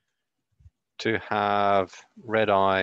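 A man speaks loudly and in drawn-out tones close to a microphone.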